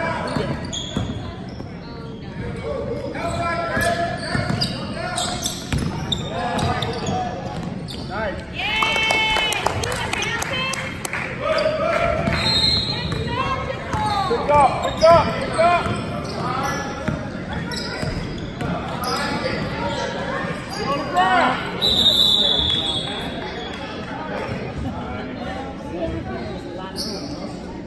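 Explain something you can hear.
Young children shout and call out across a large echoing hall.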